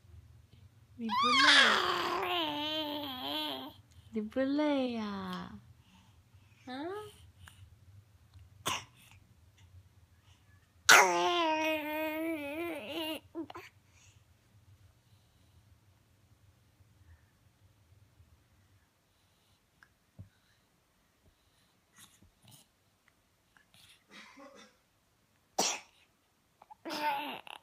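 A baby babbles and squeals loudly close by.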